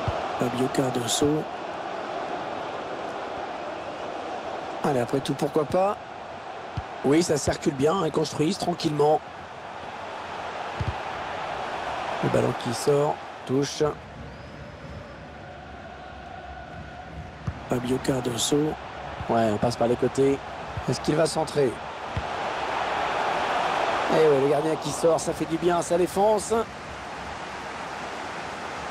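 A stadium crowd murmurs and cheers steadily, swelling as play nears the goal.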